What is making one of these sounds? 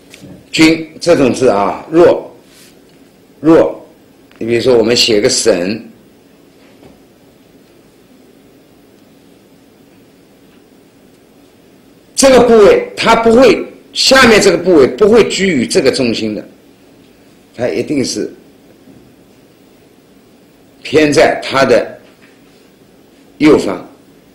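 A man speaks calmly and clearly into a close microphone, explaining.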